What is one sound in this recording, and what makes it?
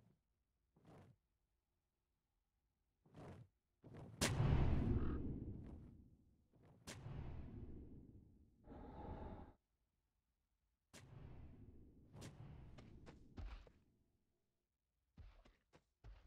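Magical sound effects whoosh and boom in short bursts.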